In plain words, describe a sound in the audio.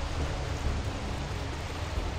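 Water pours down in a steady rush.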